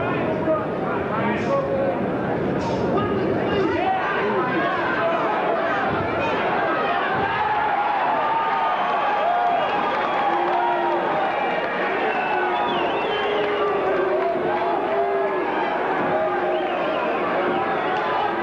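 A large crowd cheers and roars in a big hall.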